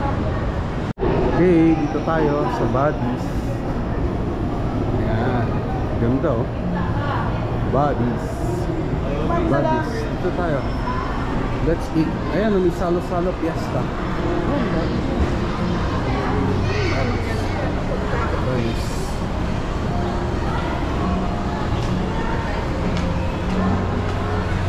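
Many people chatter and murmur in a busy indoor space.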